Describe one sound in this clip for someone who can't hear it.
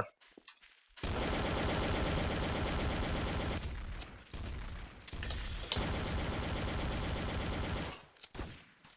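Guns fire rapid bursts of shots.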